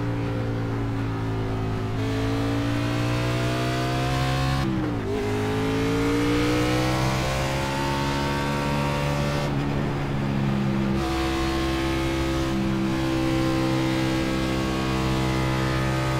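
A race car engine roars steadily, its pitch climbing through the gears and dropping sharply at each gear change.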